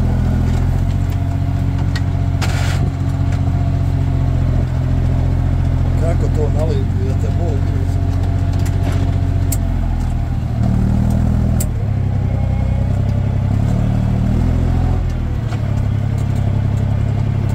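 A tractor engine drones steadily close by.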